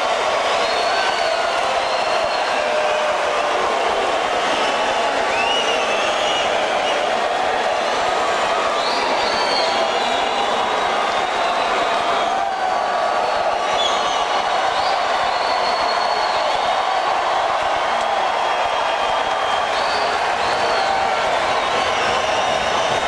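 A crowd cheers and screams loudly in a large echoing arena.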